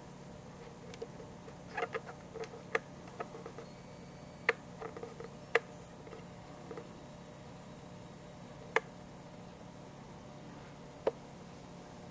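Pinball machine parts click and knock sharply now and then.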